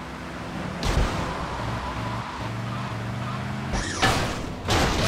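A car engine roars.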